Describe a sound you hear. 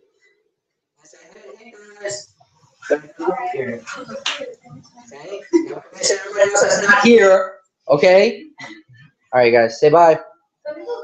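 A group of young people talk and laugh over an online call.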